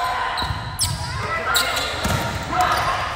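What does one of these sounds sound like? A volleyball is struck with a thump.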